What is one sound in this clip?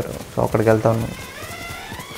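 A young man speaks briefly into a microphone.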